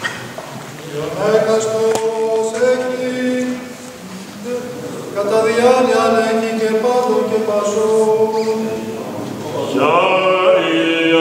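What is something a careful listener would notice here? A group of men chants slowly in long held notes, echoing in a large hall.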